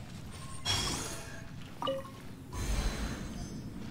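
A bright magical chime rings out as a mechanism activates.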